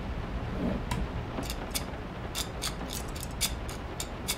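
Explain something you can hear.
A baby rattle rattles as it is shaken.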